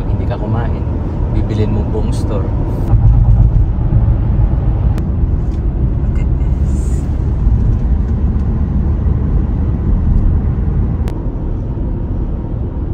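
A car's engine and tyres rumble steadily on a road.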